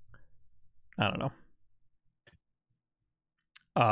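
A man speaks briefly and calmly, close to a microphone.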